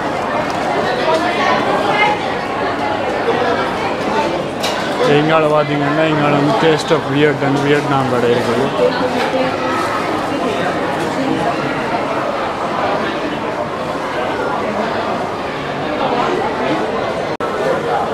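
A crowd murmurs in a busy room.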